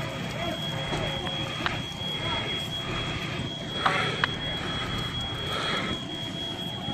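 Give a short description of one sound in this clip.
A house fire roars and crackles with sharp pops.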